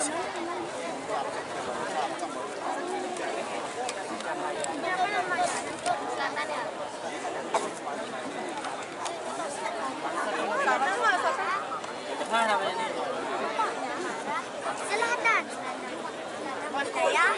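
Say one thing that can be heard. An audience chatters nearby.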